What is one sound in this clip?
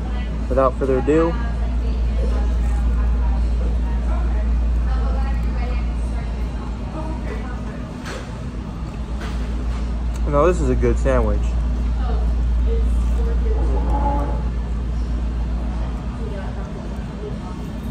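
A young man bites and chews a crunchy sandwich close by.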